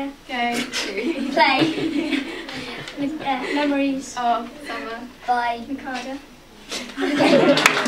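A group of young girls sings together nearby.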